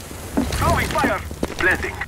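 Gunfire rattles nearby.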